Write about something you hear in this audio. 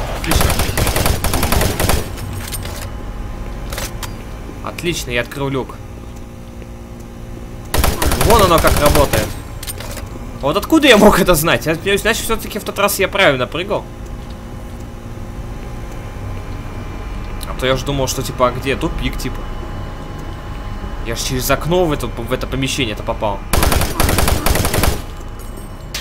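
A gun fires rapid bursts of loud shots.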